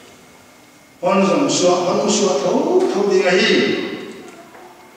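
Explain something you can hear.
An elderly man speaks calmly into a microphone in a reverberant hall.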